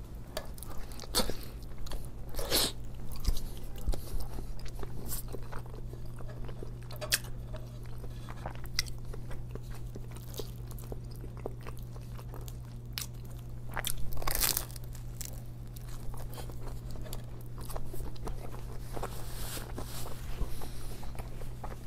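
A man chews food close up with moist, crunchy sounds.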